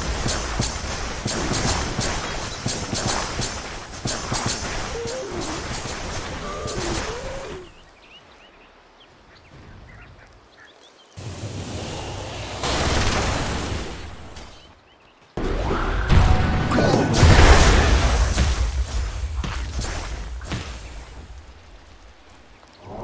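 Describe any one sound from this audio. Spells crackle and weapons clash in a fast, busy battle.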